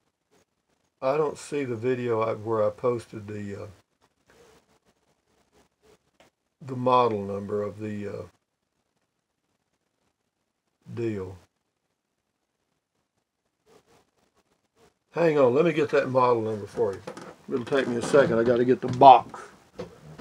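An elderly man talks calmly and close by, in short bursts with pauses.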